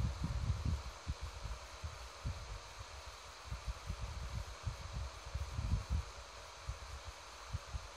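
A turtle's claws scrape and tap on a table.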